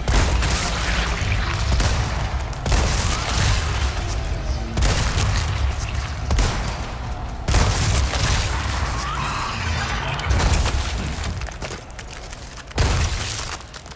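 A rifle fires loud shots that echo.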